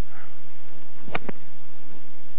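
A golf club strikes a ball with a sharp click.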